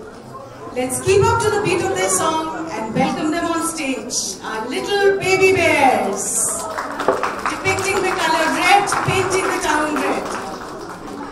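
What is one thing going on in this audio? A woman speaks loudly through a microphone.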